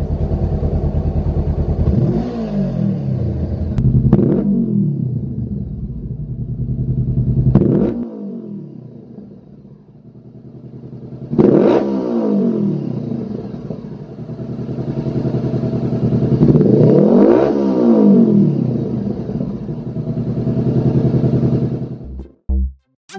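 A motorcycle engine idles and revs repeatedly, close by.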